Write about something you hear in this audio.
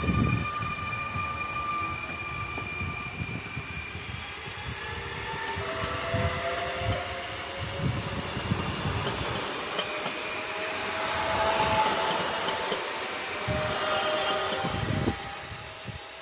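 Two electric trains pass close by each other with a rising and falling whine of motors.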